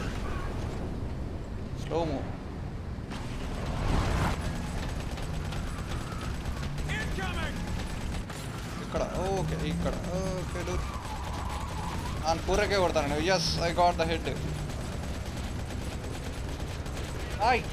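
A heavy machine gun fires in long rapid bursts.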